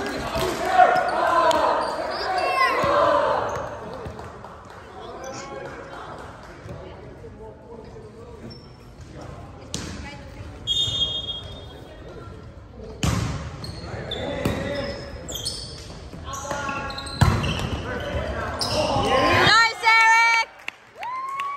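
Young men shout and call out in a large echoing gym.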